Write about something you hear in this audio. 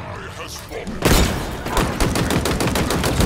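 An energy rifle fires rapid bursts.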